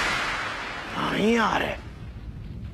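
A young man asks something in surprise.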